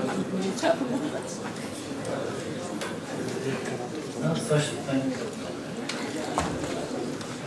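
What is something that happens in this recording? A man talks calmly nearby, as if explaining.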